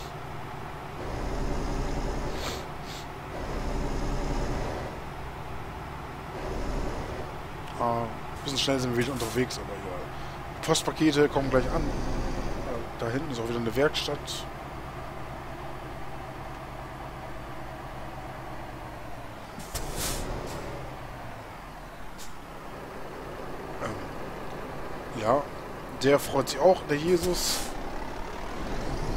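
A truck engine hums steadily as the truck drives along.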